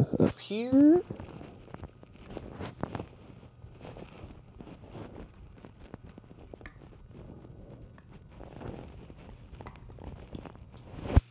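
Fabric rustles as a quilt is handled and pinned up.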